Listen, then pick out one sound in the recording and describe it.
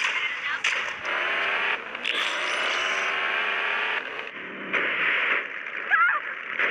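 A car engine revs loudly.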